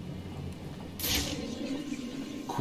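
An electric charge zaps with a sharp crackle.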